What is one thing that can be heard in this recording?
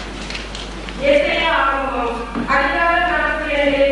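A young woman speaks through a microphone and loudspeaker.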